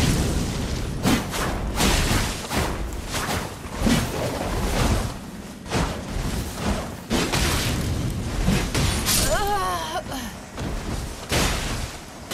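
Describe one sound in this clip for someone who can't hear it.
Metal weapons clash and strike repeatedly.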